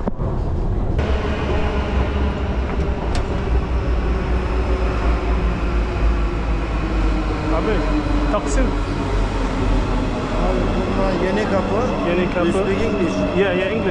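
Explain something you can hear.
A metro train rumbles loudly as it pulls into an echoing station.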